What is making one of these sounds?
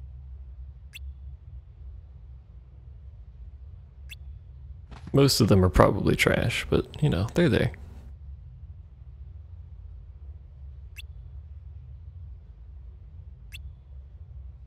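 A short electronic blip sounds now and then.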